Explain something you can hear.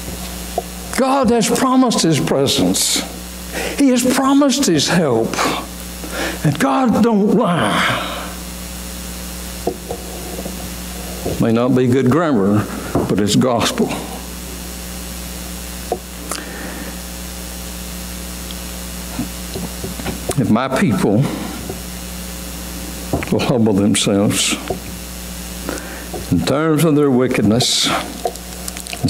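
A middle-aged man preaches with animation through a microphone, with pauses, in a large echoing hall.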